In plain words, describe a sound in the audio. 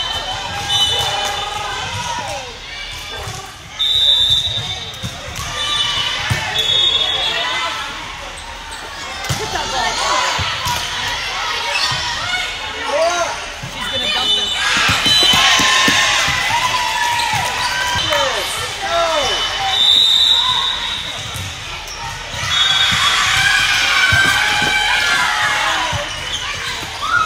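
A crowd of spectators chatters and cheers throughout.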